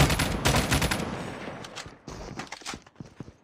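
A gun is reloaded with metallic clicks.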